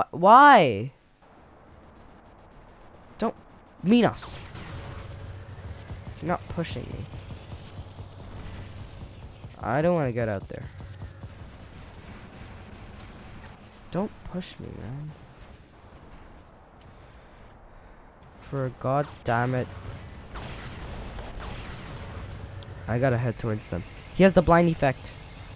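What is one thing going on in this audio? Robot guns fire in bursts with heavy thuds.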